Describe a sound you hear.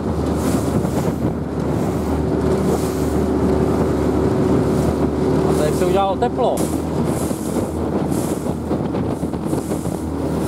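A boat engine hums steadily close by.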